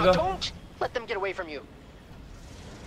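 A young man speaks casually into a microphone.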